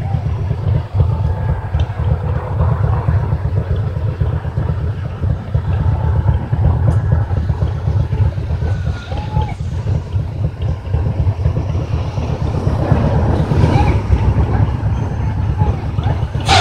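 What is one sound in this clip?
A large fire roars and crackles nearby.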